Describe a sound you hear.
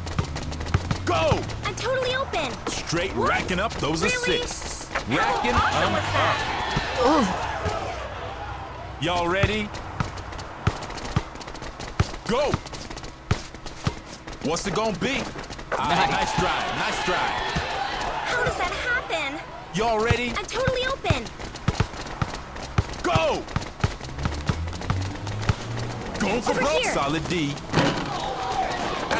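A basketball bounces on a court.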